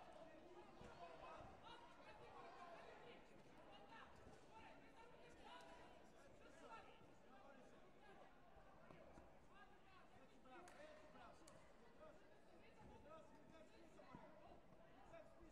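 Taekwondo kicks thud on padded body protectors.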